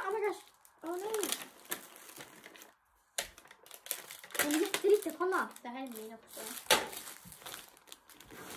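Plastic packaging rustles and crinkles.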